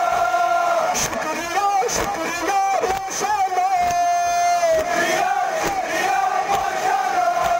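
Many men beat their chests in a steady rhythm with dull thumps.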